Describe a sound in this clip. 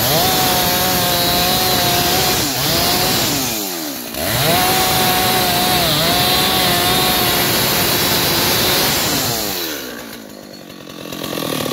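A chainsaw engine roars close by, briefly dropping in pitch and revving back up.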